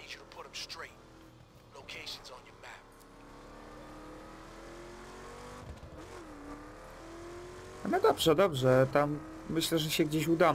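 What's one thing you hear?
A car engine revs and roars as it speeds up.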